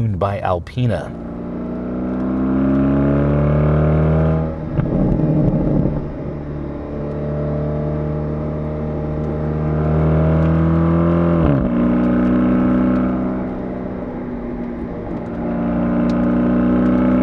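A car engine hums steadily and rises and falls in pitch as it accelerates.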